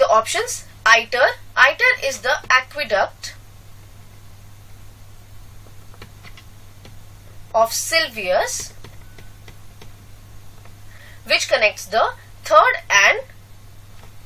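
A young woman speaks calmly through a microphone, explaining.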